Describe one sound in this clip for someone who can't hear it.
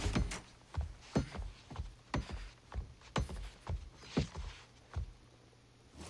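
Footsteps and a cane tap on a wooden floor.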